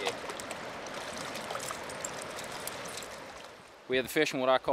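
A stream of water rushes and splashes.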